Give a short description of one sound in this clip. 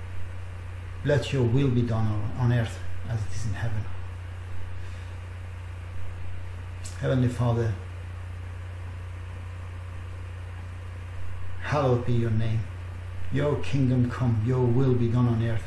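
A middle-aged man speaks calmly and slowly into a nearby microphone, with long pauses.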